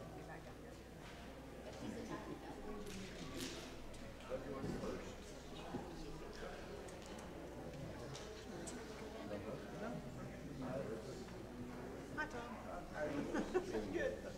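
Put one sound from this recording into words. A crowd of adult men and women chat quietly in a large echoing hall.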